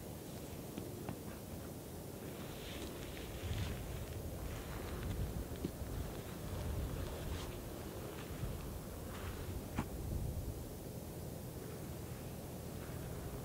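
Wind blows and rumbles steadily outdoors.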